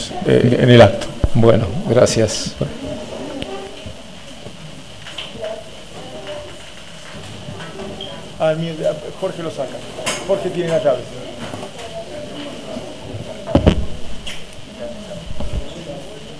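A crowd of men and women talk over one another in an echoing room.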